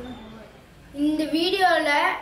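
A boy speaks close by.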